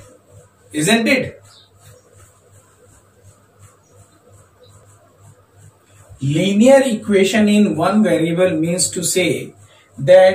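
A man speaks calmly and clearly close to a microphone, explaining.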